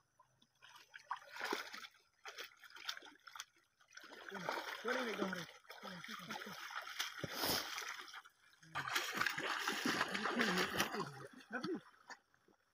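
Water splashes as people wade and grab in shallow water.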